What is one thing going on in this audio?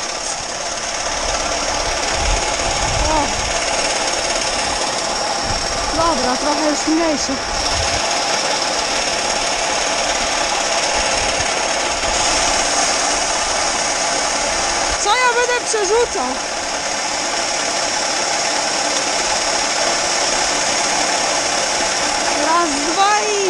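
Grain pours steadily into a trailer with a loud rushing hiss.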